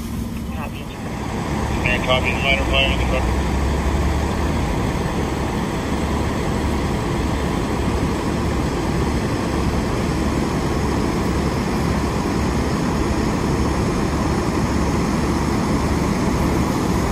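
A diesel fire engine idles.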